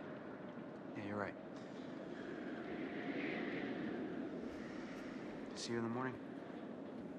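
A man speaks a few short words in a low, tense voice nearby.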